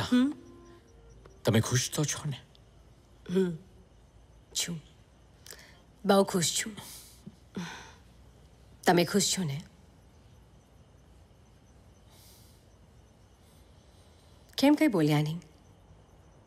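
A man speaks softly in short phrases, close by.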